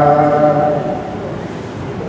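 A man chants steadily through a microphone.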